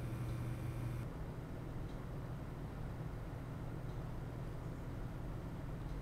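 Computer cooling fans whir very softly with a faint low hum.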